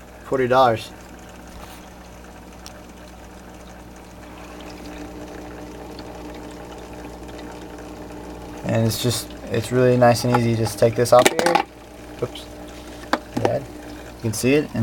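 Water bubbles and fizzes softly.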